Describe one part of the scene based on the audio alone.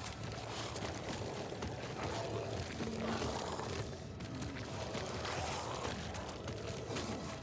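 Footsteps shuffle slowly on a hard floor.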